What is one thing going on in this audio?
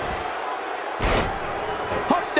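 A body slams onto a wrestling ring mat with a thud.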